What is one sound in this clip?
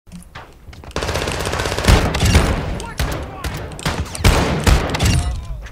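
A shotgun fires several loud, booming blasts.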